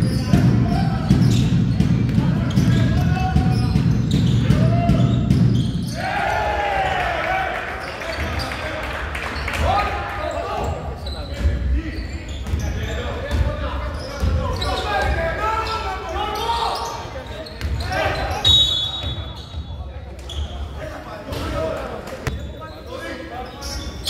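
Basketball players' shoes squeak on a hard court.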